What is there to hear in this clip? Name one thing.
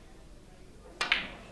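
A cue tip knocks sharply against a ball.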